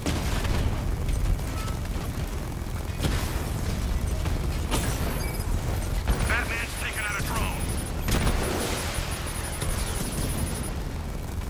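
A heavy armoured vehicle's engine rumbles deeply.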